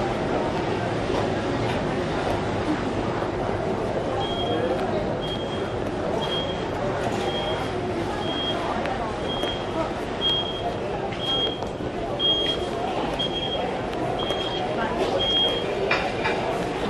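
A crowd of shoppers murmurs in a large, busy indoor space.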